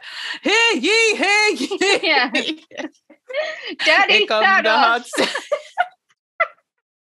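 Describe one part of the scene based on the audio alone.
A young woman sings with animation over an online call.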